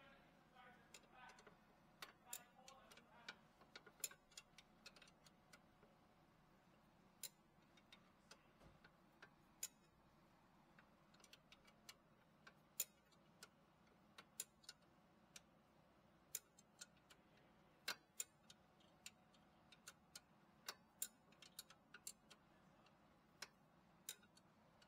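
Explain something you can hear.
A metal tool clicks and taps against metal parts.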